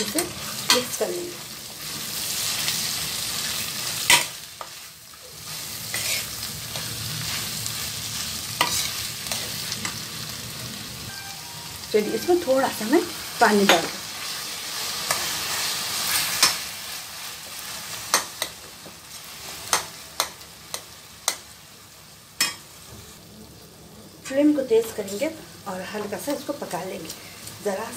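A metal spoon scrapes and clanks against a pan.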